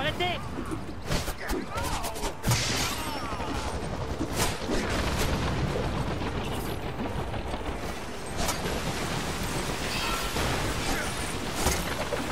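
Punches and kicks thud in a fast brawl.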